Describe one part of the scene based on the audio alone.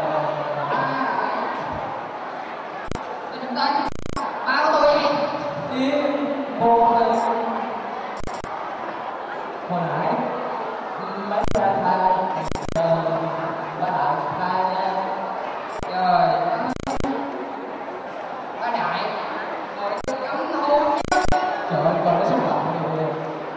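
A young man talks into a microphone over a loudspeaker.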